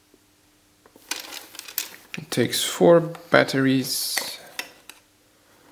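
A plastic battery cover slides and clicks open.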